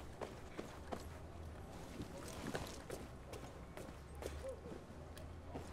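Footsteps thud steadily up wooden stairs.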